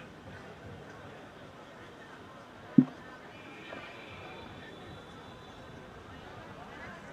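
People chatter quietly in the background outdoors.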